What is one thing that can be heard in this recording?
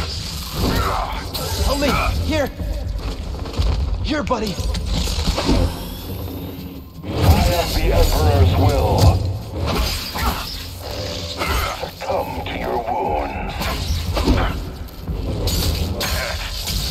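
Energy swords hum and clash with sharp buzzing strikes.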